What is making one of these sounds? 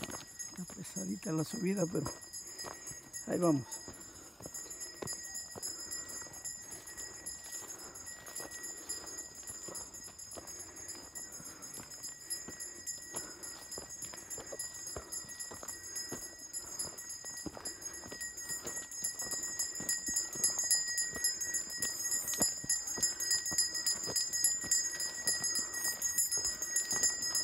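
Footsteps crunch on a dirt and gravel path.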